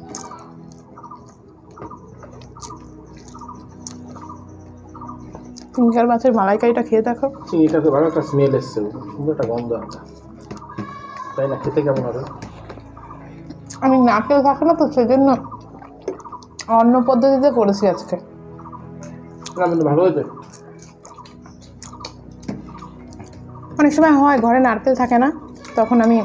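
Hands squish and mix rice on plates.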